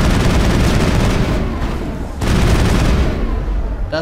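A gun fires in rapid, heavy bursts.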